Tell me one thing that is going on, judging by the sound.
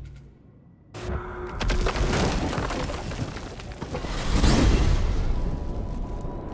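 A magical gateway opens with a loud rushing whoosh.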